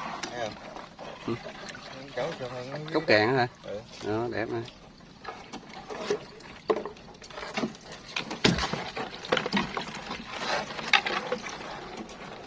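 A wire fish trap rattles and clanks against a wooden boat.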